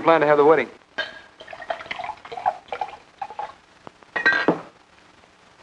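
Glass bottles clink softly as a drink is poured.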